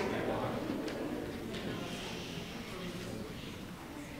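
A young boy reads aloud into a microphone in an echoing hall.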